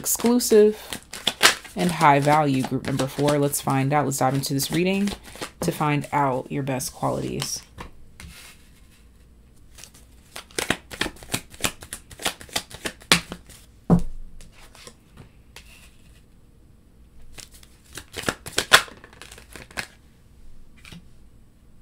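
Cards rustle and tap softly.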